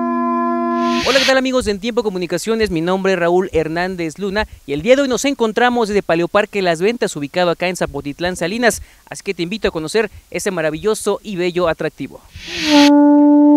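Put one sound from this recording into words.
A young man speaks steadily into a microphone outdoors.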